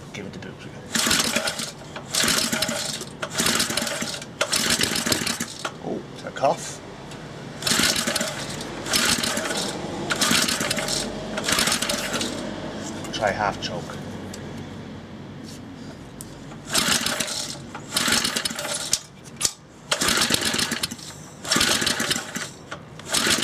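A starter cord rasps loudly as it is yanked again and again on a small engine.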